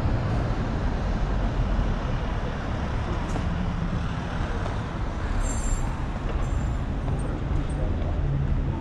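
Footsteps tap on stone stairs and pavement.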